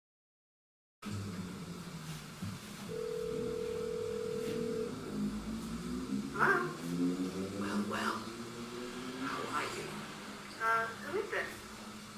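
An electric bass guitar plays low notes and slides.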